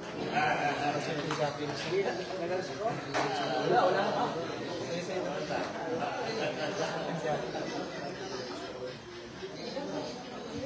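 A crowd of men and women chatters loudly nearby.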